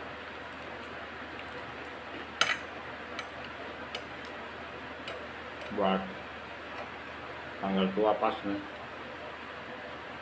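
A man chews food with his mouth close by.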